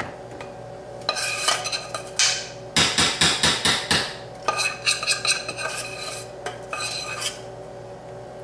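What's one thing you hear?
A metal pot clanks and scrapes against the rim of a baking pan.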